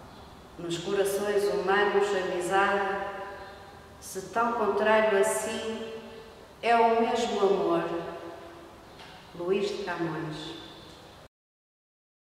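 A middle-aged woman reads aloud slowly and expressively, close to the microphone.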